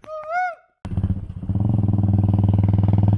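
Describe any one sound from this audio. A motorcycle engine runs steadily while riding.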